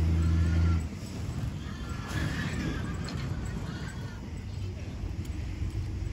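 Wind rumbles outdoors.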